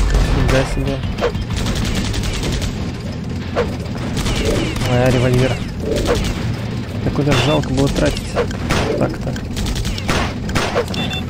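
Machine guns fire in short rapid bursts.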